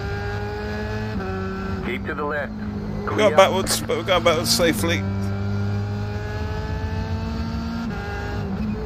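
A racing car engine hums steadily and shifts pitch through the gears.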